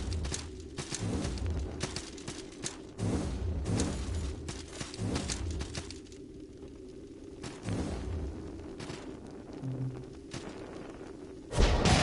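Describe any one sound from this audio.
Footsteps tap quickly on stone.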